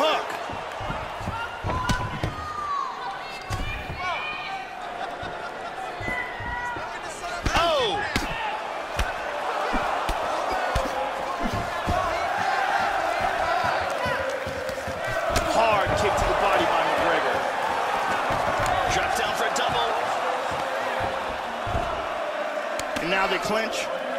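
A crowd roars and cheers in a large arena.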